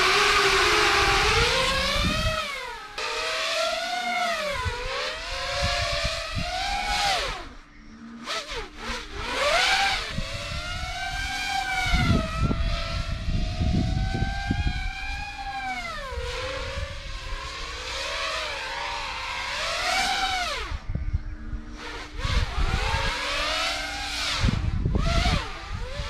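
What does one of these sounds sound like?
A small drone's propellers whine, their pitch rising and falling as it climbs and swoops.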